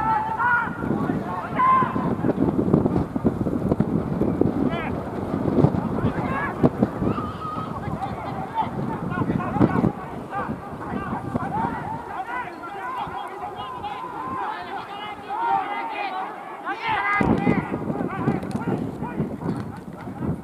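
Rugby players shout to each other across an open field.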